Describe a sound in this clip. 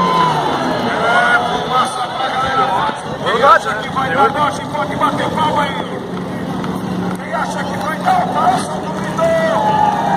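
A crowd cheers outdoors.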